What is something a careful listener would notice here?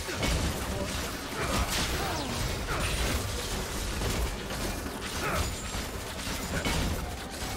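Video game combat effects clash and burst during a team fight.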